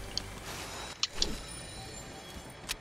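A chest creaks open.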